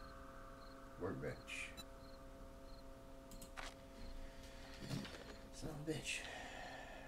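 A man speaks in short bursts, close to a microphone.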